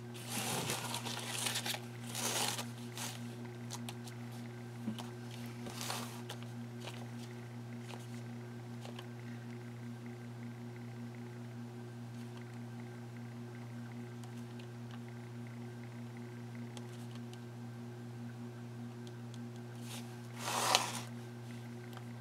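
Plastic sleeves rustle as a binder is handled.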